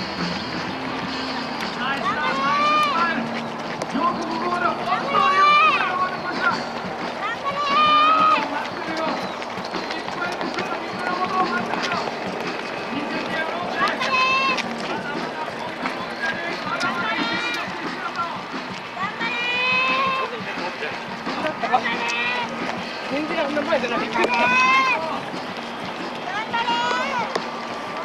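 Many runners' feet patter on a paved road.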